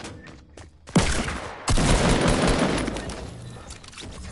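Gunshots fire in a rapid, loud burst.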